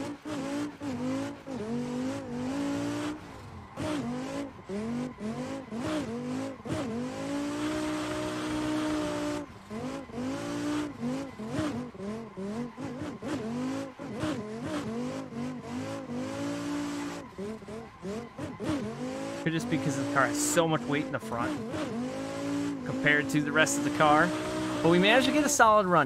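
A racing car engine revs up and down as gears shift.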